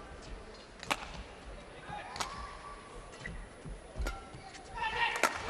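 Rackets strike a shuttlecock with sharp pops in a large echoing hall.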